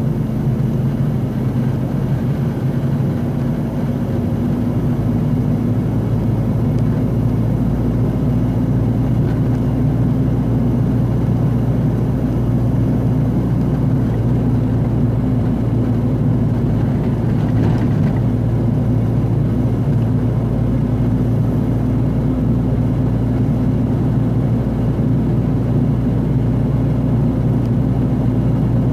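Tyres roll on the road.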